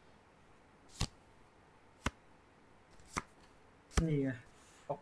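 Playing cards are dealt with short sharp clicks.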